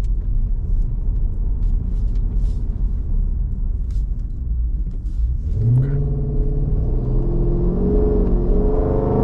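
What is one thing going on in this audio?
A car engine rumbles low inside the car while driving.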